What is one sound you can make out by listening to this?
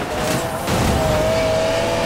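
Metal scrapes and grinds in a crash.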